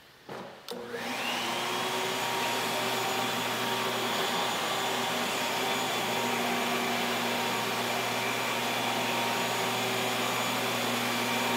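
A floor machine hums and whirs steadily.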